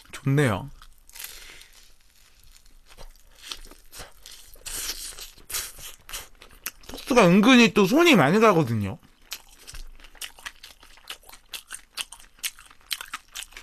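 A young man chews and crunches toast close to a microphone.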